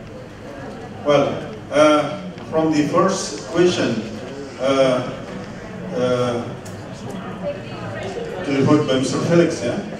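A man speaks calmly into a microphone, heard through loudspeakers.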